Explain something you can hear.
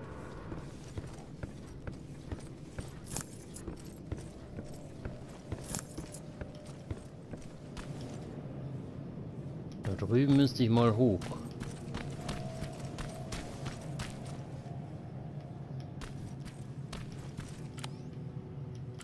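Footsteps crunch on gravel and debris at a walking pace.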